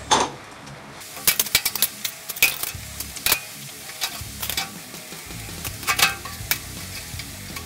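Metal parts clank against a steel frame.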